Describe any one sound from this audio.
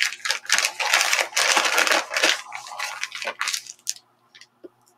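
A plastic bag crinkles and rustles loudly under handling, up close.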